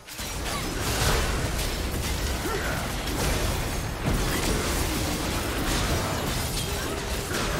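Magic spells whoosh and blast in a busy fight.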